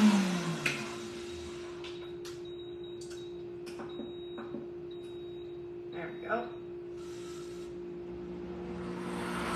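A woman speaks nearby between blender runs.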